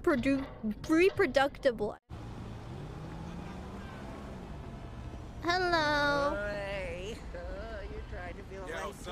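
A young woman speaks animatedly into a microphone in a high, playful voice.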